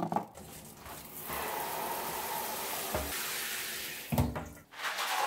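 Water sprays from a shower and splashes into a plastic bucket.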